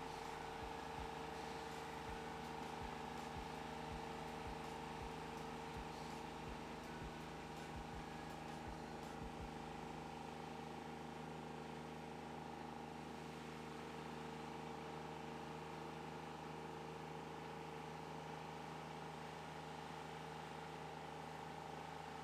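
A small engine runs steadily nearby.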